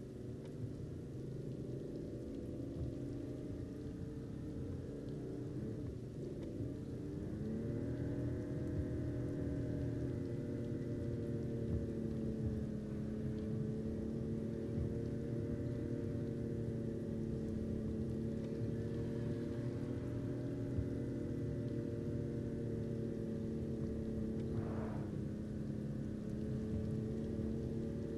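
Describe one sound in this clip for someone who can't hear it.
A car engine hums steadily, rising in pitch as it speeds up.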